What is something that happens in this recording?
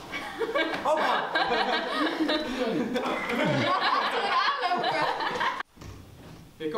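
Young men and women chat and laugh together nearby.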